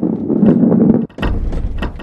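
Wooden crates smash apart.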